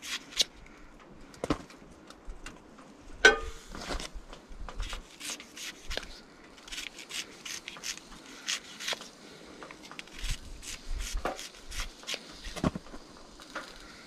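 A knife shaves wood in short, quick strokes close by.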